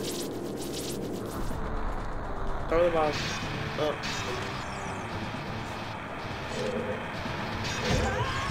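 Video game fire roars and crackles.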